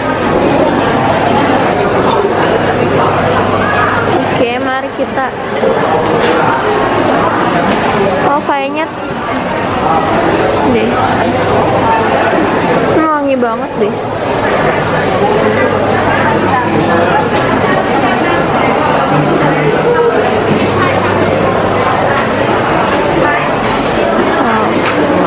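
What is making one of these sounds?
A crowd of men and women chatter all around in a busy, echoing hall.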